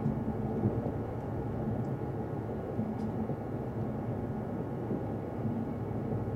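A train rumbles steadily along the rails, heard from inside a carriage.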